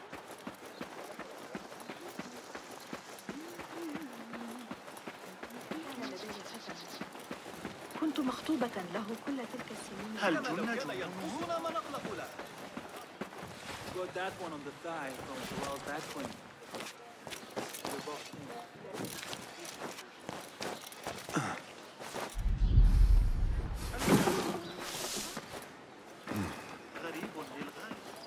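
Footsteps run quickly over sand.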